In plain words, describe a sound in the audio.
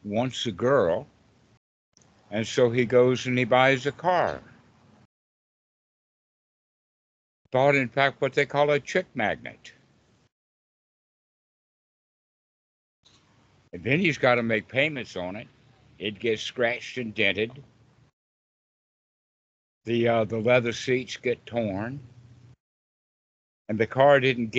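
An elderly man talks calmly and laughs a little over an online call.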